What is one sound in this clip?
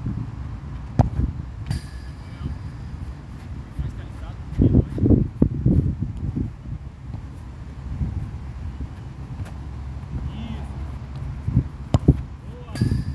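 A football is kicked with a sharp thud.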